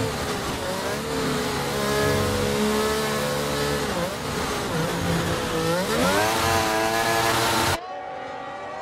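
A racing car engine screams loudly up close, shifting through gears.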